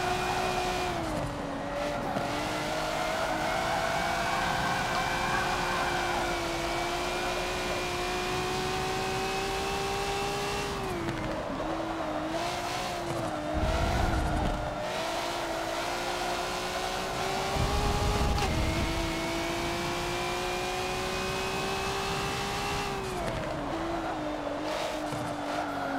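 A racing car engine roars, rising in pitch as it speeds up and dropping sharply at each gear change.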